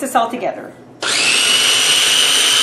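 A food processor motor whirs loudly and steadily.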